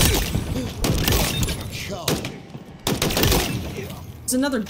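Rapid gunfire bursts from a video game.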